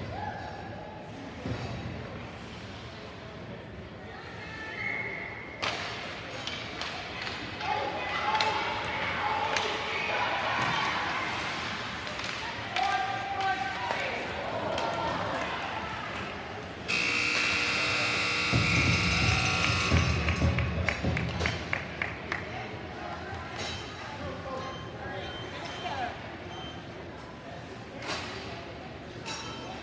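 Spectators chatter and shout in a large echoing arena.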